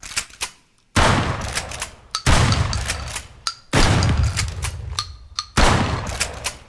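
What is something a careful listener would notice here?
A shotgun fires loudly, booming and echoing.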